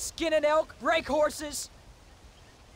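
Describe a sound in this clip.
A young man shouts out loudly.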